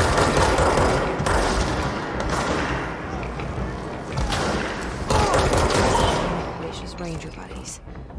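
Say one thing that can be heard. Gunshots fire in loud bursts with booming blasts.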